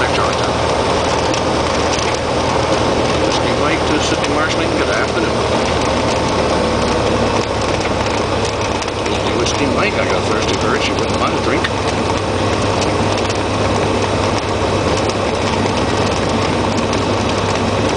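A small plane's propeller engine drones loudly and steadily up close.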